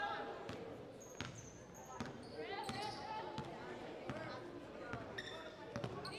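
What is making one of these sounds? Sneakers squeak on the court floor.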